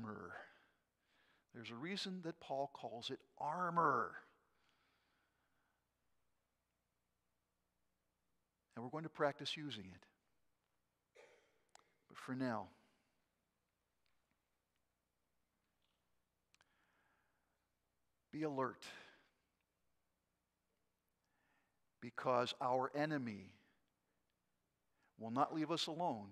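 An elderly man speaks calmly into a microphone with pauses, in a reverberant hall.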